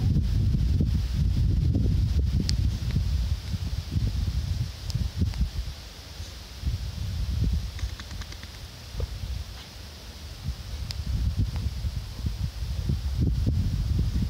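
A dog digs and scratches at loose soil.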